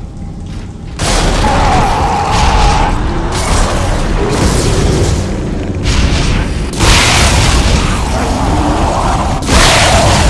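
A weapon fires in loud, roaring bursts.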